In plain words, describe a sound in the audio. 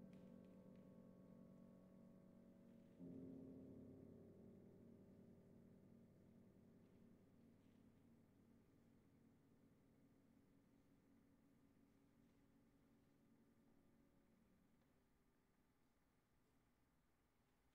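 A piano plays slow, held chords that ring out and fade in a reverberant hall.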